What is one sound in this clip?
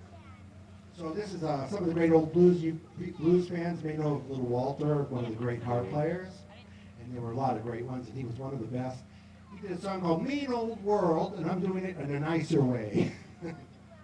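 A man speaks through a microphone and loudspeakers.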